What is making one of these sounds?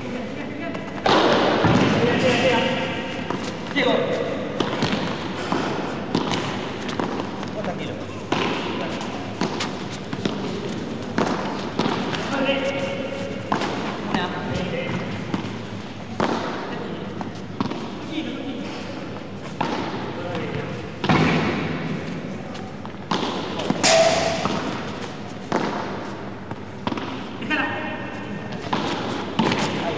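A ball bounces on a hard court.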